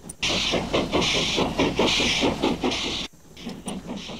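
A train rolls past with rhythmic clattering wheels.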